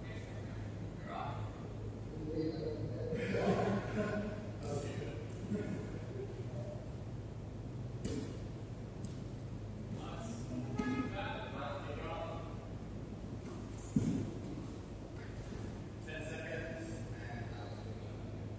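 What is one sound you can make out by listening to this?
A woman speaks calmly in a large echoing hall.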